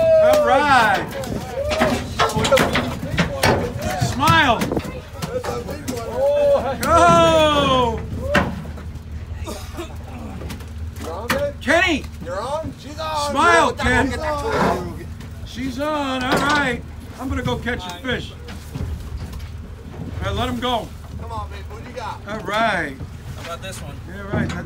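Adult men and women talk and call out with excitement nearby, outdoors.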